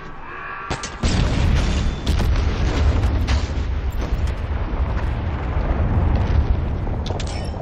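A heavy vehicle tumbles and crashes with a deep rumble.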